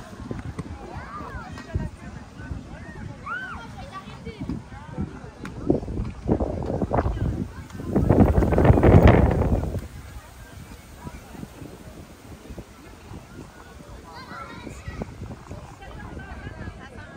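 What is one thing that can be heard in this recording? Children and adults chatter and call out in the distance outdoors.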